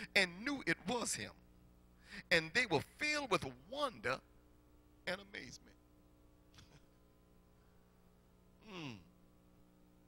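A man preaches with animation into a microphone, in a room with a slight echo.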